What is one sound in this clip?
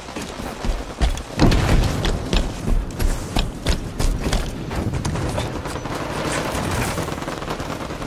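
Guns fire in quick, sharp bursts.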